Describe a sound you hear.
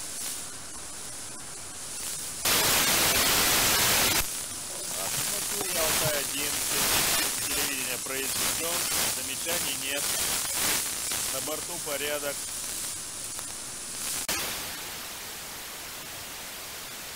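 A radio receiver hisses with steady static.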